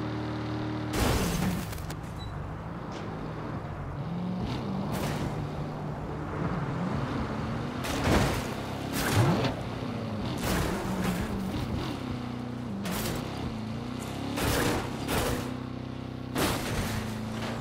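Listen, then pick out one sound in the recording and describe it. A car crashes with loud bangs and crunches.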